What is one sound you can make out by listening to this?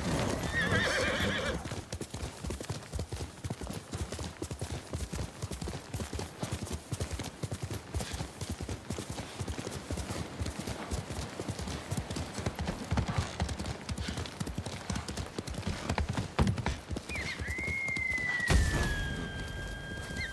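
A horse gallops with rapid, thudding hoofbeats.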